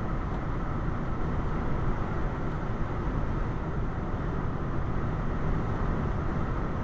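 A car drives steadily along a road, its tyres rumbling on the asphalt.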